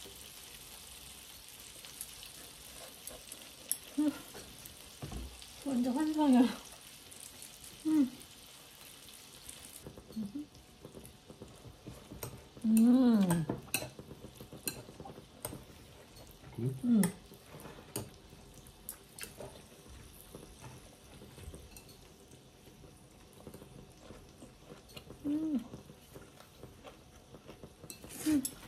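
Chopsticks clink against a ceramic bowl.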